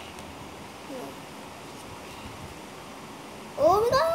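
Trading cards rustle as a boy shuffles them.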